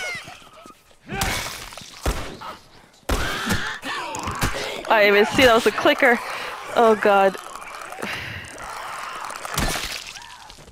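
Heavy blows thud against bodies in a fight.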